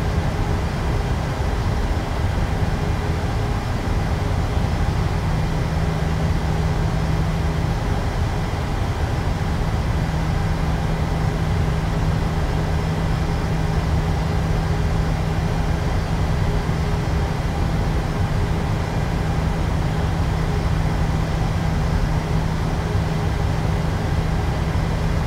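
Jet engines hum steadily as an airliner rolls along a runway.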